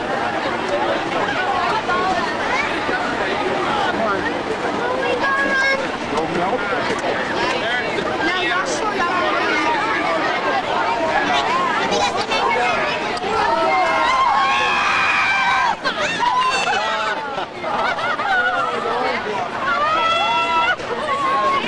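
Young riders scream and shout excitedly.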